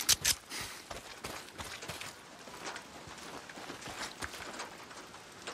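Footsteps tread steadily on grass and dirt.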